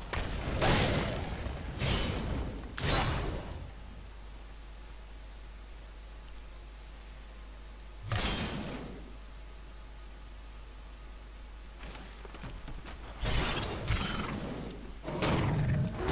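Blade strikes and blows thud in a fight.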